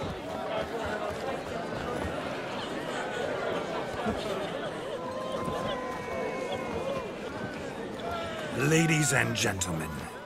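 A crowd of people chatters and murmurs indoors.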